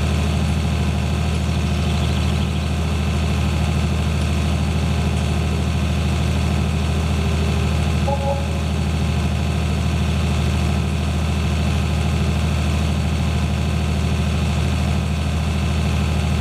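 A tractor engine drones steadily as it drives along.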